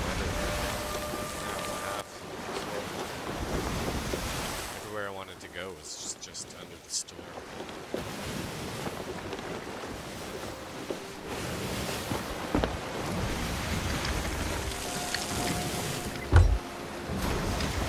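Ocean waves wash and roll around a sailing ship.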